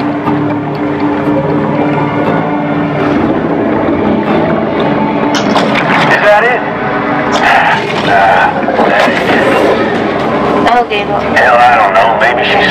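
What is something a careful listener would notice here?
Water swirls and churns as a shark swims and bites underwater.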